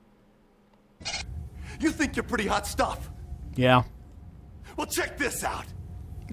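A man speaks close by.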